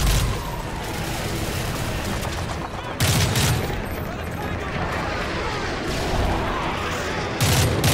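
A rifle fires loud bursts of shots close by.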